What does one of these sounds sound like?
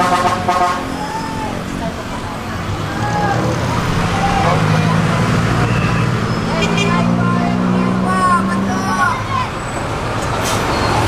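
A bus engine rumbles steadily from inside while driving.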